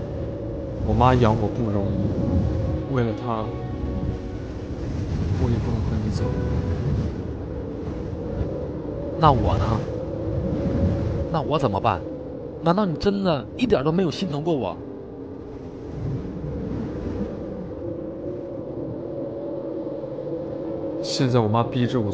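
A young man speaks tensely, close by.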